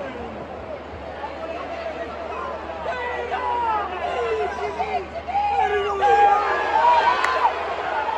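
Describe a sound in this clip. A large stadium crowd chants and sings, growing louder.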